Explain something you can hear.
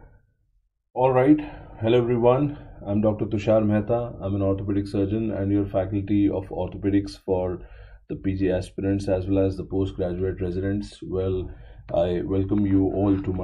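A middle-aged man speaks calmly through an online call microphone.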